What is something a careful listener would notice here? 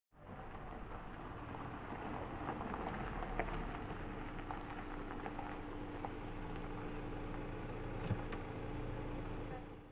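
Tyres crunch slowly over gravel.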